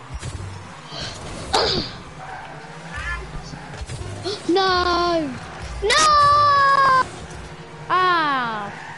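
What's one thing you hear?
A game car's engine roars as it boosts.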